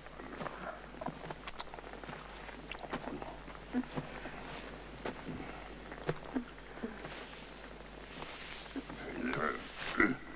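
Footsteps and bodies scuffle with dull thuds.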